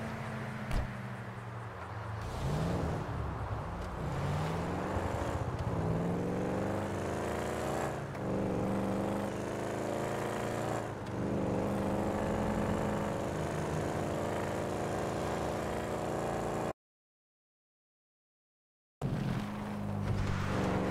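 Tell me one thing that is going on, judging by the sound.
A car engine roars, rising in pitch and dropping again as it shifts gears.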